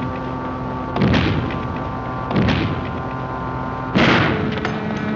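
A wooden beam slams against a metal door with heavy bangs.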